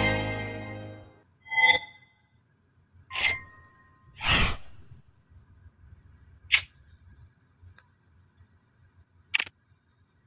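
Short electronic chimes and jingles ring out now and then.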